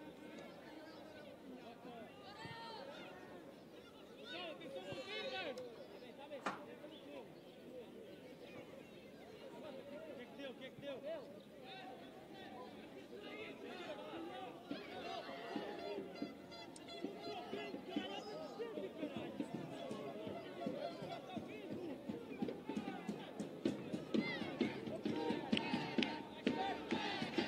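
Young men call out to each other across an open playing field.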